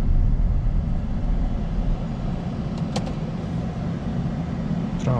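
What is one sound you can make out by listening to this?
A car engine hums steadily with low road rumble from inside the car.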